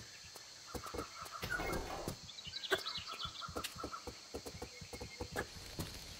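Footsteps run quickly across hollow wooden boards.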